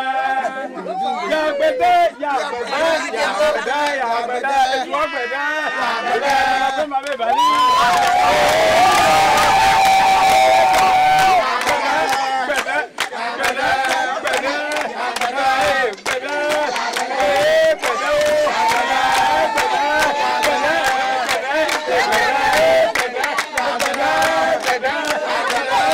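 A crowd of women and men sings loudly together outdoors.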